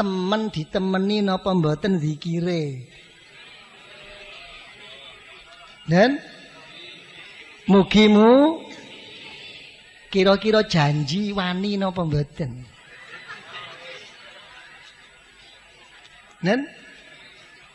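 An elderly man chants slowly through a microphone, in long drawn-out phrases.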